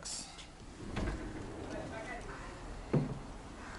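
A sliding glass door rolls open.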